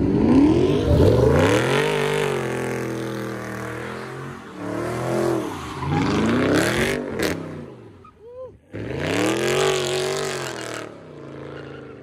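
Tyres screech and squeal as a car spins on the road.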